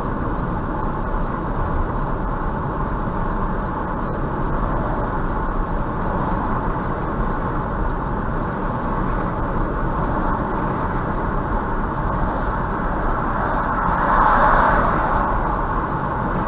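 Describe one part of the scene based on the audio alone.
A car's engine and tyres hum steadily on a smooth road.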